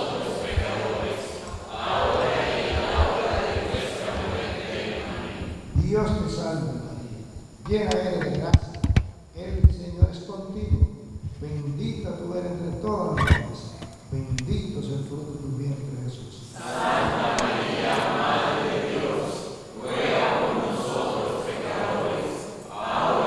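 A congregation of men and women recites a prayer together in unison.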